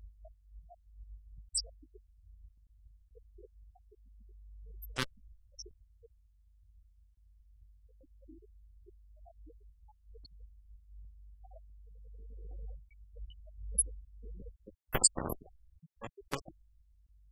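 A man speaks quietly at a distance in a room.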